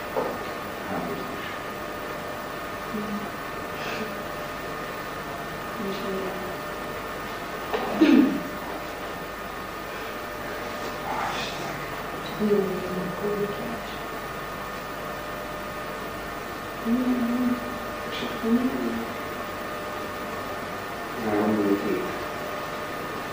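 Young people talk in short exchanges at a distance in an echoing hall.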